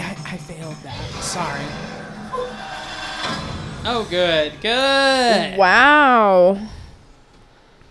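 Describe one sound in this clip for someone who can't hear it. A man talks with animation through a microphone, his voice rising and falling in a playful, sing-song way.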